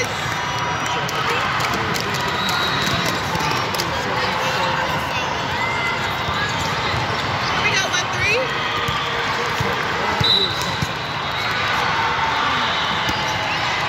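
A crowd chatters and calls out steadily, echoing in a large hall.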